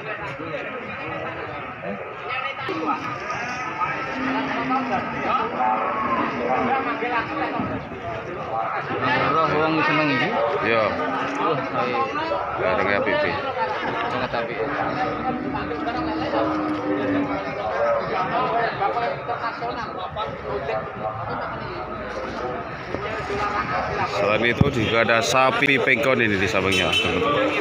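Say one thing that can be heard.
A crowd of men chatter all around outdoors.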